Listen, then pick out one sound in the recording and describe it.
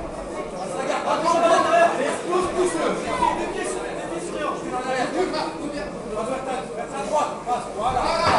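A crowd of spectators shouts and cheers loudly nearby.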